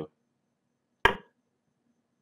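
A chess piece clicks sharply as it is moved.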